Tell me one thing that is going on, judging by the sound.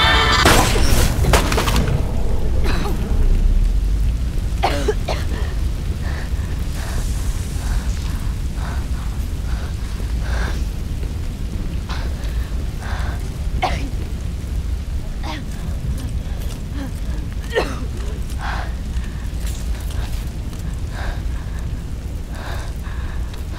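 Fire roars and crackles close by.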